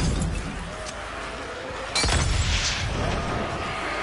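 A fire bursts up with a loud whoosh.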